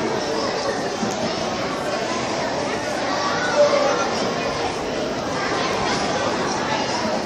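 A large choir of children sings together in a reverberant hall.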